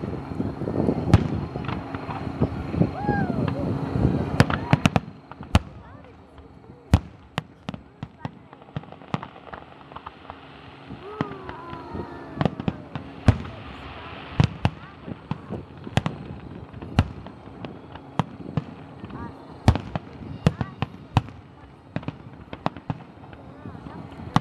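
Fireworks bang and crackle in the sky at a distance.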